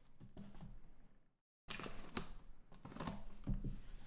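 Packing tape rips as it is peeled off cardboard.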